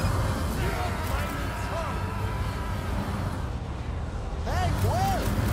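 Electronic chimes swoop up and down.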